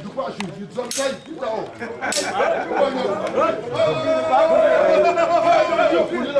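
A middle-aged man speaks loudly and with animation, close by.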